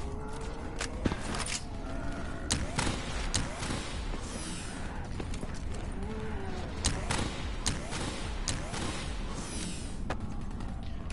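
Gunshots crack one at a time, with short pauses in between.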